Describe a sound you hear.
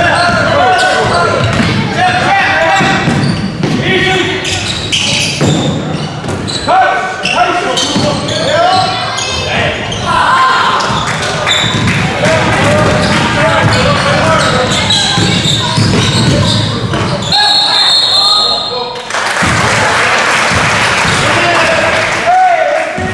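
Basketball shoes squeak on a hardwood floor in an echoing gym.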